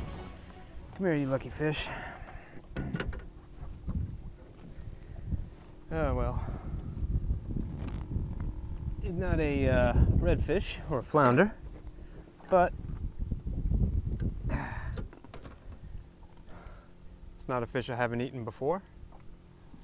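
A man speaks calmly and close by, outdoors.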